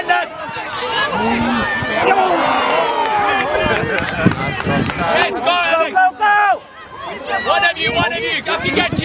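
Adult spectators shout and cheer from a distance outdoors.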